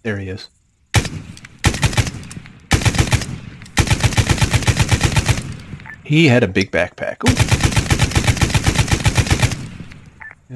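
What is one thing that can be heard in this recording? A machine gun fires long rapid bursts close by.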